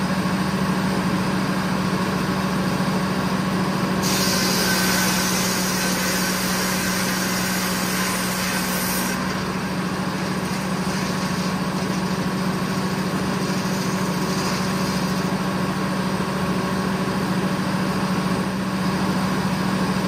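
A sawmill engine drones steadily and loudly.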